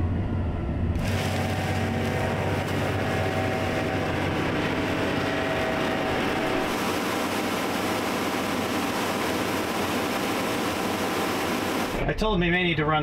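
A large harvesting machine engine drones steadily nearby.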